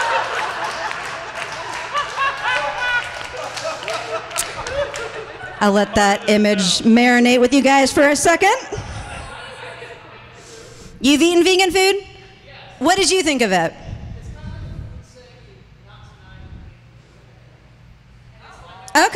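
A young woman speaks with animation into a microphone, at times shouting, in an echoing hall.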